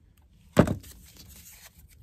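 A small blade scrapes and cuts through paper.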